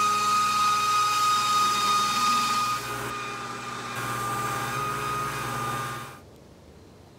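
A belt grinder whirs steadily as metal is ground against it.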